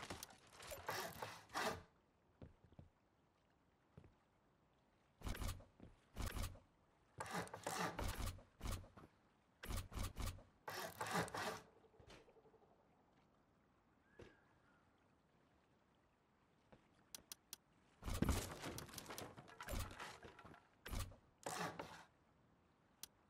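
Wooden building pieces thud and clatter loudly into place in short bursts.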